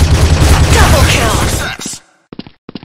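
A loud, booming victory fanfare plays, then cuts off.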